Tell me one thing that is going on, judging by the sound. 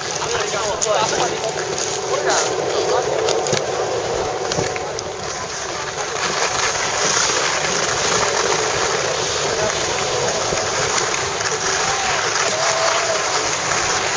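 A snowboard scrapes across hard snow.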